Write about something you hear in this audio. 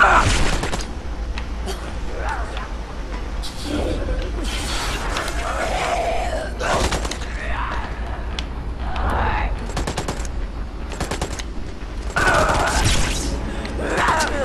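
Gunfire bursts out in sharp rapid shots.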